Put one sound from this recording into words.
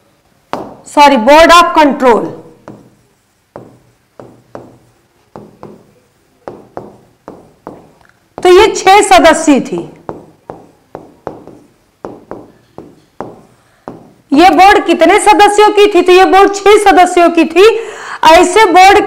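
A woman speaks clearly into a microphone, explaining.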